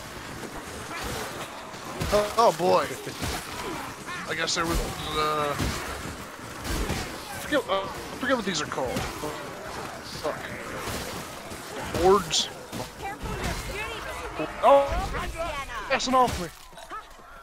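A heavy weapon strikes and thuds against enemies in a fight.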